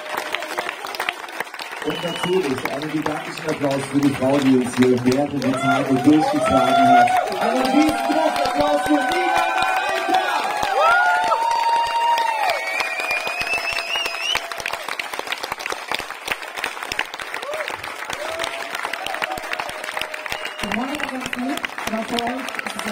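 A crowd claps along steadily.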